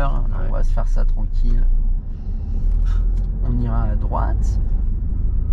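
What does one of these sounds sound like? A young man talks nearby in a lively way.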